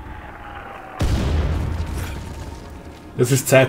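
An explosion booms loudly and rumbles.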